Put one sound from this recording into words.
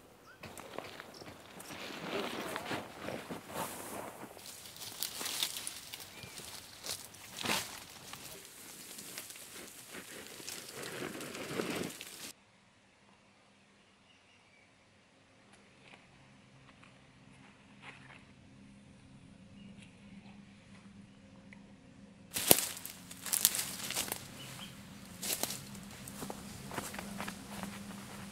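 Footsteps scrape and crunch on dry dirt and brush.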